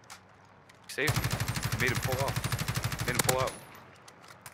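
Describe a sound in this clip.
An automatic rifle fires a long, rapid burst.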